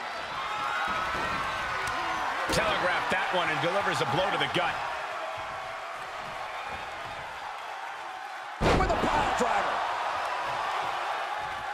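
A crowd cheers and roars in a large arena.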